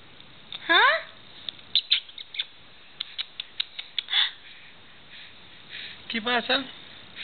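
A baby coos and squeals up close.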